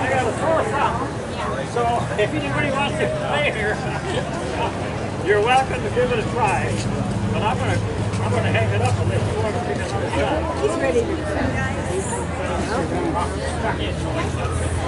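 Many adults chatter nearby outdoors.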